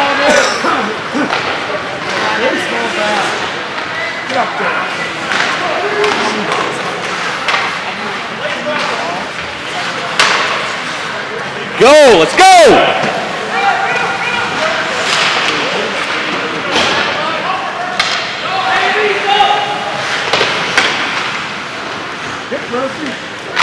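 Ice hockey skates scrape and carve on ice in a large echoing rink.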